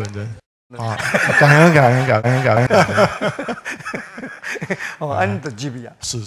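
An audience laughs softly.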